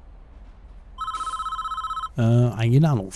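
A short electronic chime beeps steadily.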